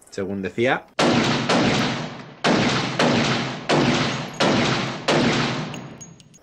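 A pistol fires shots that echo in an indoor range.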